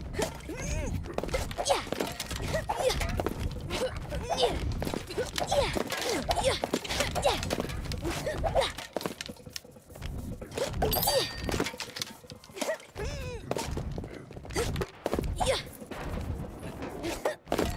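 Light footsteps patter quickly across a stone path.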